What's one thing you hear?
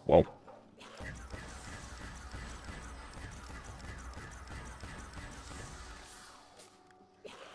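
An energy weapon fires with buzzing zaps.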